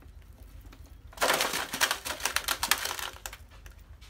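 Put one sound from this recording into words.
A mouse scrambles into a wire trap.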